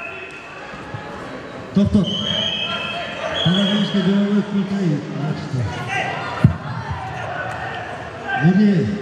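A crowd of children and adults shouts and cheers in an echoing hall.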